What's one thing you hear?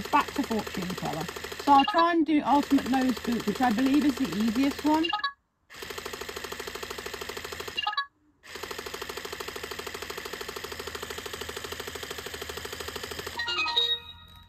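A robot toy dog plays a buzzing electronic tune.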